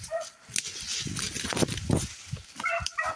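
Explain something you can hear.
Leafy branches brush and swish against a moving body.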